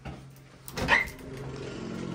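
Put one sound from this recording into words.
A window handle clicks.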